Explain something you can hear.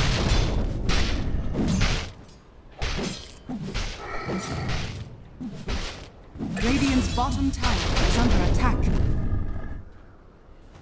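Weapons clash and strike in a fierce fight.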